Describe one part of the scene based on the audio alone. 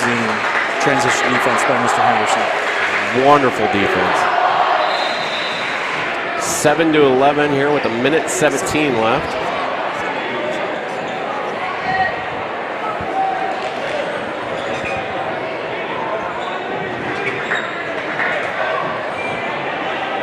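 A ball bounces on a hardwood floor.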